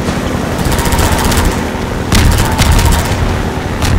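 Water splashes and sprays against a boat's hull.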